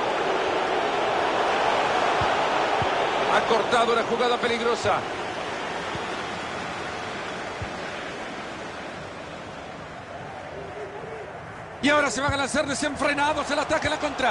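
A large stadium crowd roars and cheers, then slowly quietens.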